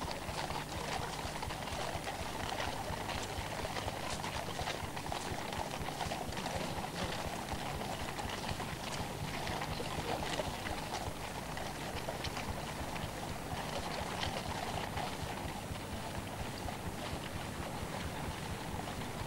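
Horses' hooves clop on hard ground.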